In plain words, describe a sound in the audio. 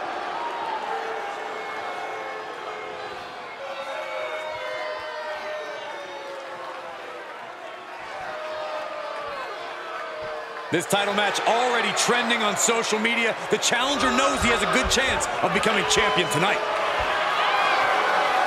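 A large crowd cheers in a big arena.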